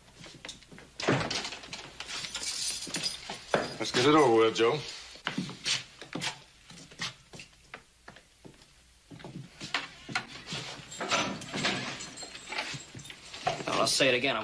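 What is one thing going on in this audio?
Men talk tensely.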